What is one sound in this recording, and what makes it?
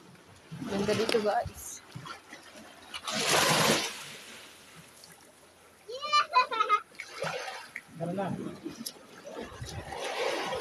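A young child speaks and calls out nearby.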